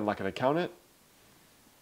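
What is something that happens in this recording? A young man speaks briefly and calmly, close by.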